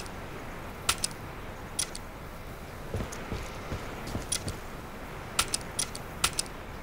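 Menu buttons click sharply, a few times.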